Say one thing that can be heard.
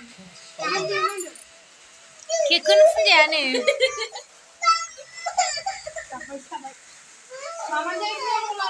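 A small child cries and wails loudly close by.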